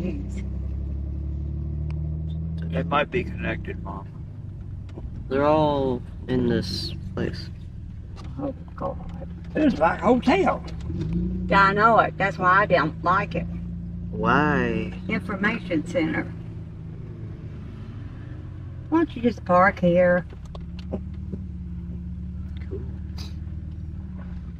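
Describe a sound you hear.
A car engine hums low and steady while driving slowly.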